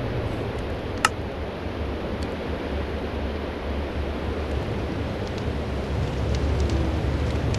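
A furnace fire crackles softly.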